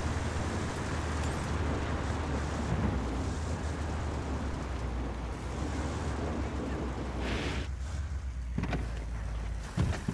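A vehicle engine rumbles steadily.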